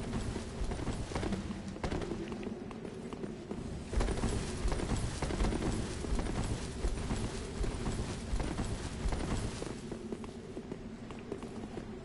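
Armoured footsteps clank and thud on stone.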